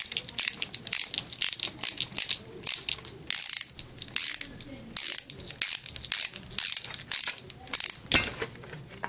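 A screwdriver clicks and ratchets as screws are turned.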